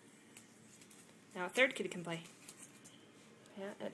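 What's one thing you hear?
A paper wristband tears.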